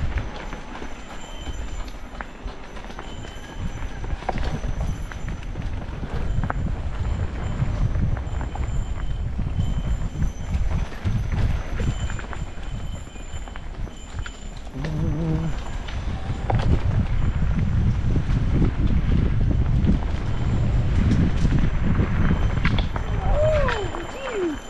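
Wind buffets a microphone on a moving mountain bike.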